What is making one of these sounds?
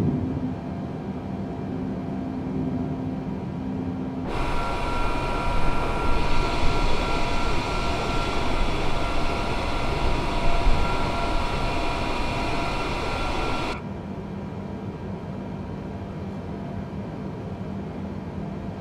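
Jet engines hum in a low, steady drone from inside a cockpit.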